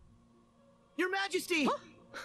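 A man speaks urgently in a high, squeaky cartoon voice.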